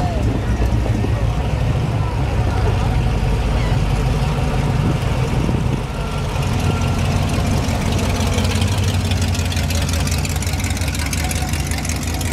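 A V8 engine burbles deeply close by as a car passes.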